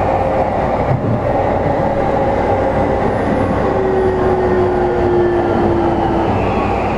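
A stationary electric train hums steadily with a low, even drone.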